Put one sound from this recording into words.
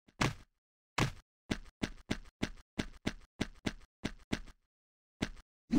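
Footsteps tap on stone at a steady pace.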